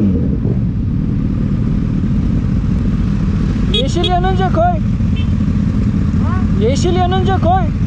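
A motorcycle engine idles with a steady low rumble close by.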